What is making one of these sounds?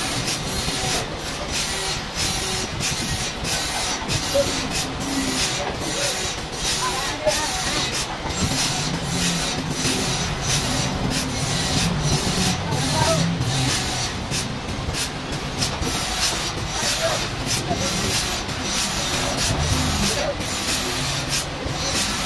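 A forklift engine rumbles steadily nearby.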